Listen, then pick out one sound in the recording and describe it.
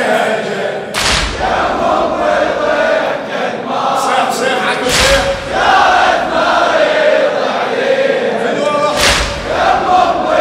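A crowd of men beat their chests in rhythm.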